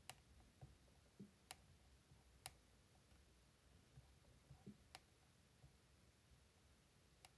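Fingernails tap and click sharply close to the microphone.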